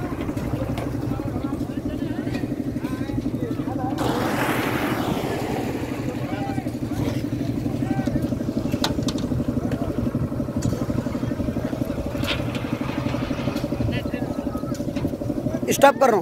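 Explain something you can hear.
A motor engine chugs steadily with a fast, even throb.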